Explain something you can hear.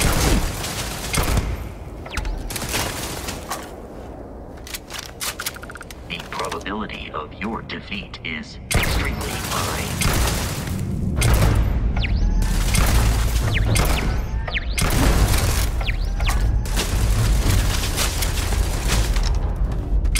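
Laser gunfire crackles in rapid bursts.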